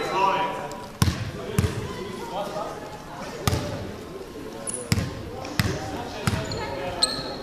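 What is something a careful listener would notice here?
A basketball bounces on the court floor.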